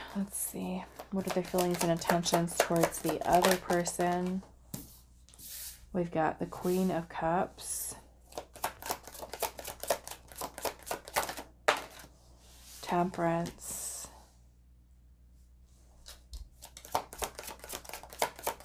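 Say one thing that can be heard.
A deck of cards is shuffled with quick, crisp flicks.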